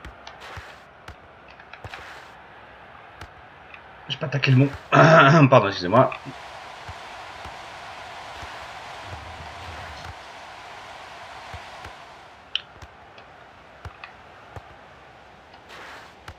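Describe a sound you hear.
A football is kicked with short thuds.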